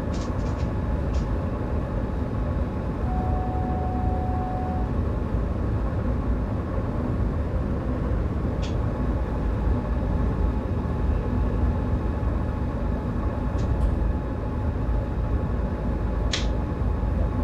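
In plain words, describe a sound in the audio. Train wheels click over rail joints now and then.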